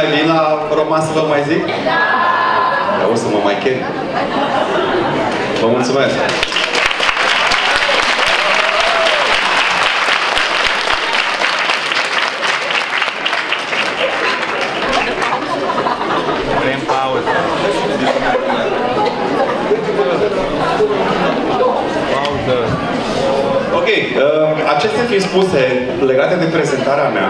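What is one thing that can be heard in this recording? A man speaks calmly to an audience through a microphone.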